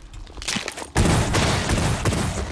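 Flesh bursts apart with a wet splatter.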